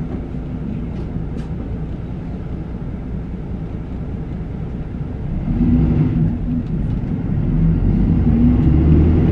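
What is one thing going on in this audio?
A bus engine idles with a deep, steady rumble that grows louder partway through.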